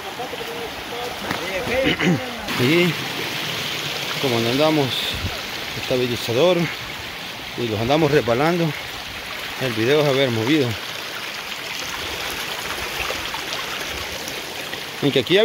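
A shallow stream trickles and babbles over rocks.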